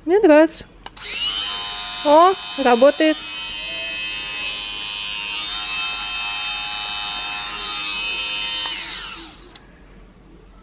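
A small electric motor whirs steadily at a high pitch.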